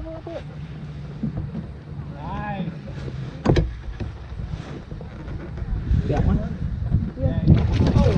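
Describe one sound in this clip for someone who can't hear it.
A paddle splashes and dips in the water.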